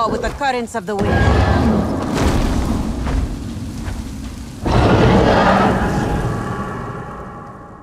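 A large winged creature beats its wings as it takes off.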